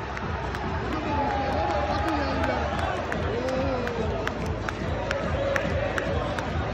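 Fans clap their hands in rhythm nearby.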